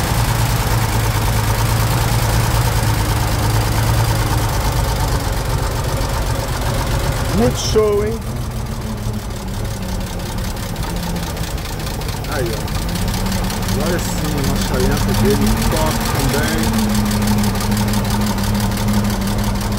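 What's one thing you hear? An old car engine idles with a steady, low rumble close by.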